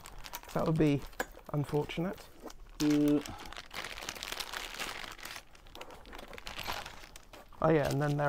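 Plastic packaging crinkles in a man's hands.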